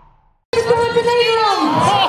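A firework bursts with a deep boom.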